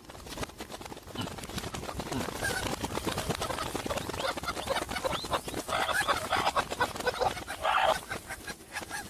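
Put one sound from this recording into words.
A flock of hens clucks and cackles close by.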